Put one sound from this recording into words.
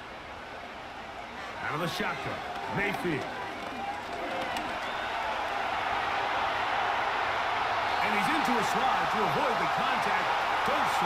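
A stadium crowd cheers and roars louder and louder.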